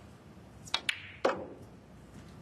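Snooker balls clack against each other.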